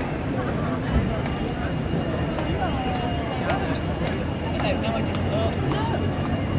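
A crowd of people chatter and walk along a busy street outdoors.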